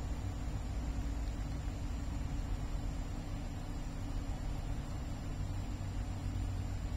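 A cat eats wet food from a bowl.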